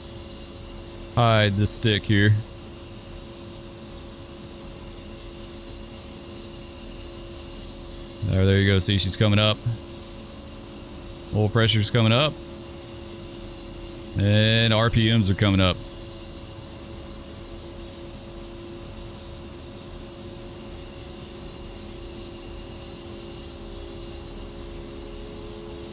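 An aircraft engine hums steadily.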